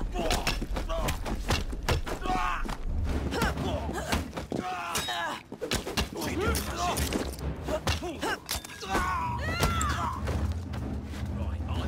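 Men grunt and cry out in pain while fighting.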